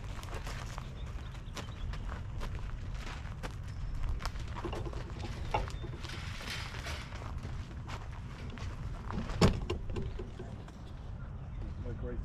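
Plastic sheeting rustles and crinkles as a man handles a greenhouse cover.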